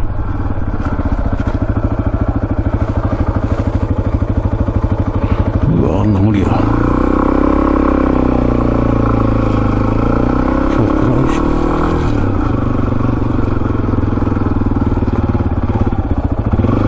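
A motorcycle engine putters up close, revving higher for a while and then settling.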